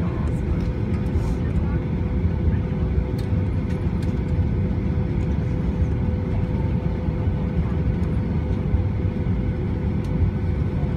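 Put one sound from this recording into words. A jet engine roars steadily as an airliner taxis, heard from inside the cabin.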